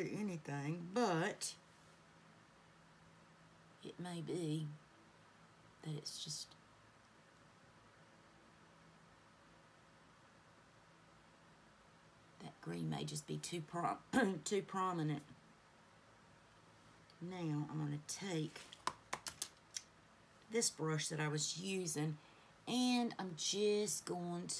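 A woman talks calmly and closely into a microphone, pausing often.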